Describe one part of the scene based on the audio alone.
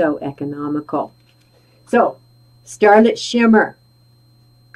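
An older woman speaks with animation, close to a microphone.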